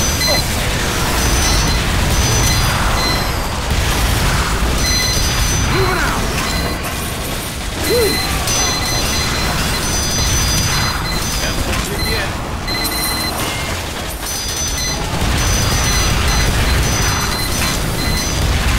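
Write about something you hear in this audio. Game gunfire and explosions crackle and boom continuously.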